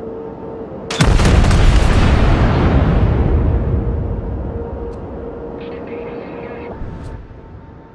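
A battleship's main guns fire a salvo with a deep, rumbling boom that slowly fades.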